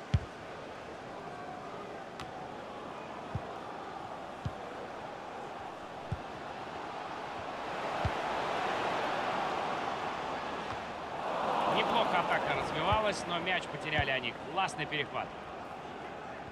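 A stadium crowd murmurs steadily and swells into a roar.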